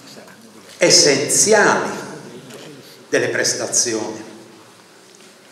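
An elderly man speaks slowly and calmly into a microphone in an echoing room.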